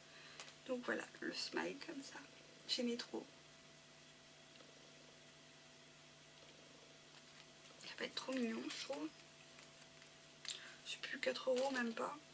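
A woman talks calmly and close by, with pauses.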